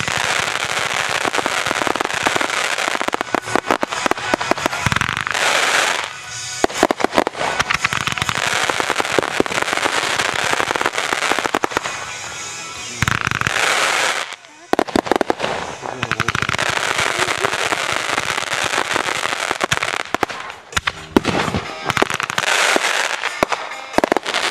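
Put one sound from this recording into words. Fireworks crackle and pop rapidly overhead.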